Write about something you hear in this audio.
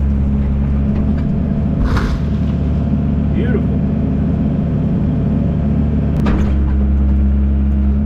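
A stump thuds and cracks as an excavator bucket pulls it from the ground.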